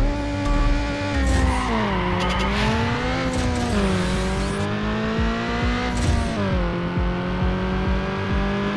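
A car engine revs hard, its pitch dropping with each gear change and climbing again.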